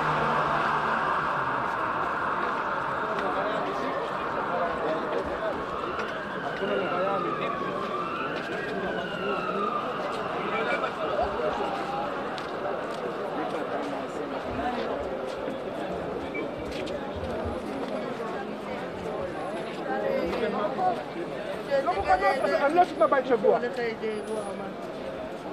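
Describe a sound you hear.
A large crowd of men murmurs and chatters outdoors.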